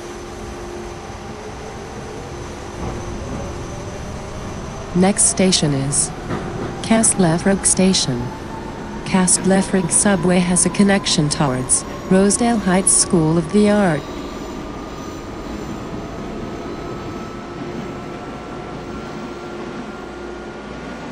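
A train motor whines, slowly rising in pitch as the carriage speeds up.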